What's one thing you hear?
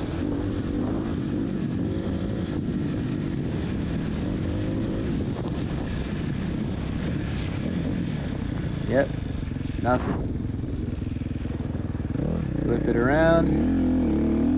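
A dirt bike engine revs and rumbles close by.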